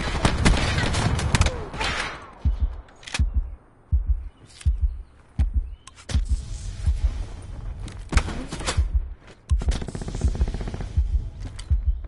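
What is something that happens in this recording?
Rapid gunfire bursts close by.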